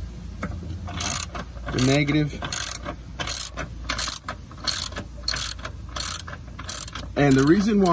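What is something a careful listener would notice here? A ratchet wrench clicks in short bursts.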